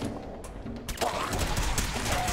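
A laser gun zaps.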